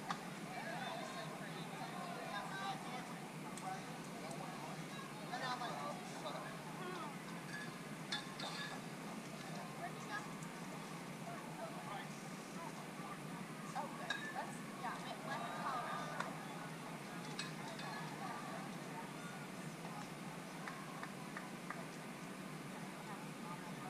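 Young players call out and chatter across an open field.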